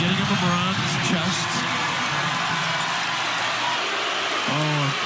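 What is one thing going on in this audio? A large indoor crowd cheers and roars loudly.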